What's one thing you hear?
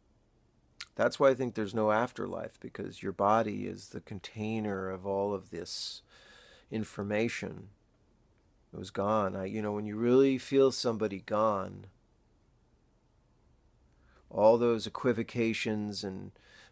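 A man talks close to the microphone in a calm, low voice, with pauses.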